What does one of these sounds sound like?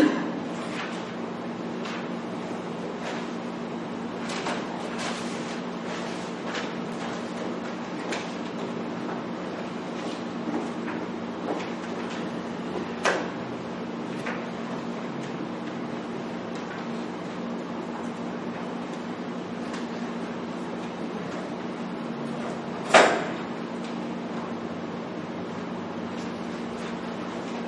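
Papers rustle and pages turn nearby.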